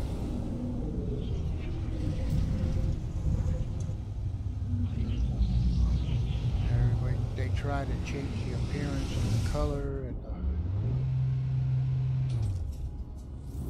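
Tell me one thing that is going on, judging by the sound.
A vehicle engine hums and whooshes steadily as it speeds along.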